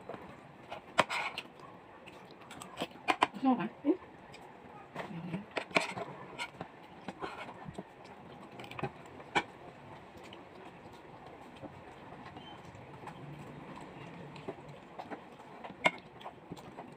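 A spoon clinks against a plate.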